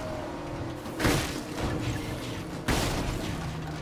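A vehicle bumps and thuds over rough ground.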